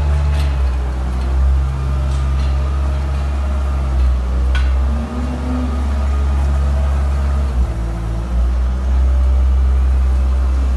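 A machine engine rumbles steadily close by.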